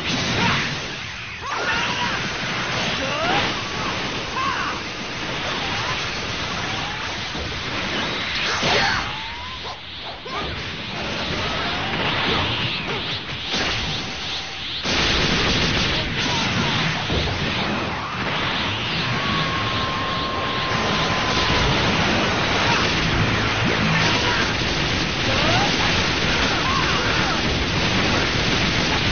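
Energy blasts and explosions roar and crackle.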